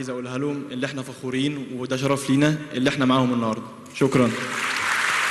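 A young man speaks through a handheld microphone in a large hall.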